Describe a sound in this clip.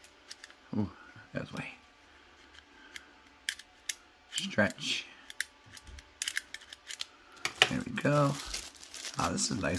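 A small plastic device clicks and rattles as it is handled close by.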